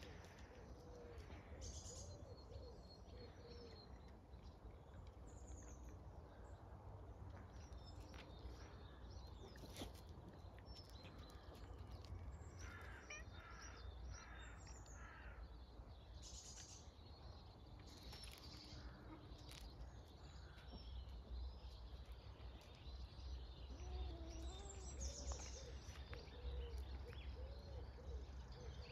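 Paws scuffle and scrape on loose gravel.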